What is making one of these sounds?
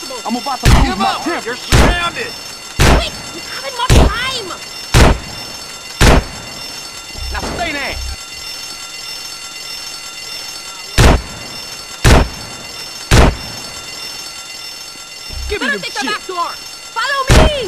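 A shotgun fires blasts.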